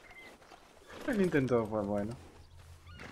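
A horse whinnies nearby.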